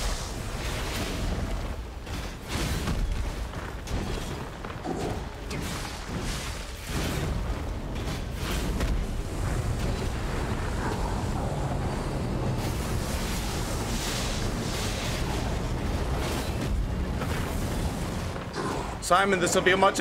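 Heavy metal blows clang and crash again and again in a fight.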